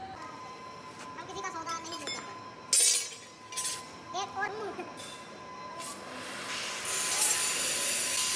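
A long metal blade scrapes and clanks against a metal bucket.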